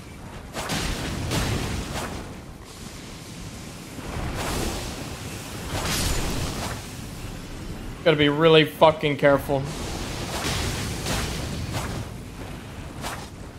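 A blade swings and strikes with sharp whooshes and hits.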